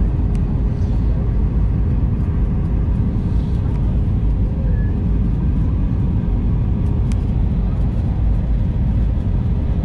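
Jet engines roar steadily with a deep rumble.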